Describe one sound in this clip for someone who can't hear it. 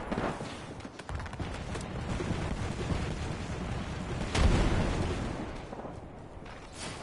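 Footsteps thud quickly on metal stairs.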